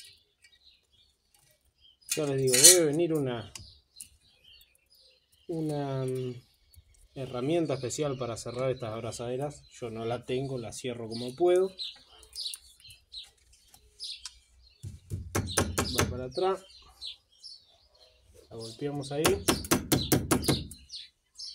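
Pliers click sharply against a metal clamp.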